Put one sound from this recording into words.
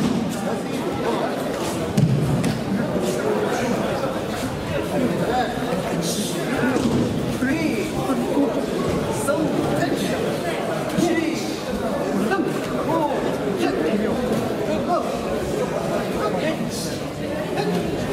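Many young men talk and call out at once in a large echoing hall.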